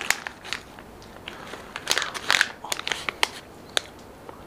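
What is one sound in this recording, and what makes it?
Almonds rattle as they pour into a hand.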